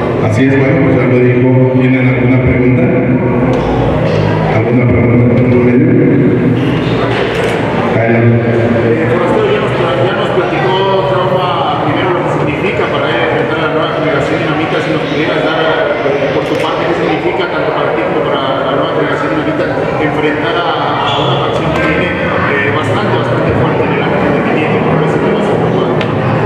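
A man speaks calmly into a microphone, heard through loudspeakers in an echoing hall.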